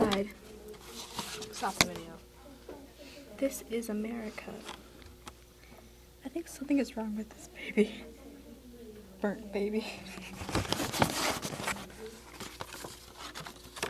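Paper pages rustle and flutter as they are handled and turned.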